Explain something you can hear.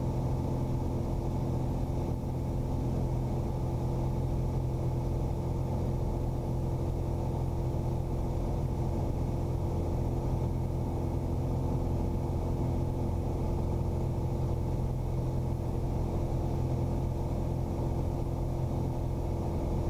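Wind rushes past the aircraft.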